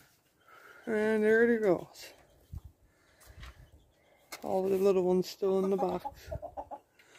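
Hens cluck nearby.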